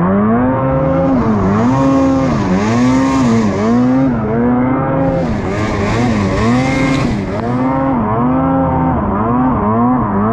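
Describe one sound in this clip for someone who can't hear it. A snowmobile engine revs up and down loudly, close by.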